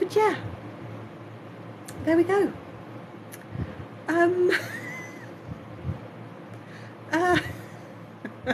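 A woman speaks in short, squeaky, high-pitched bursts of a cartoon voice, close to the microphone.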